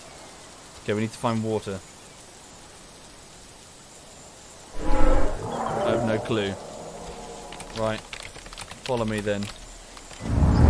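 A large creature lets out deep hooting calls.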